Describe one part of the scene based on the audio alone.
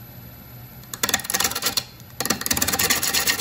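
A wood lathe starts up and whirs loudly.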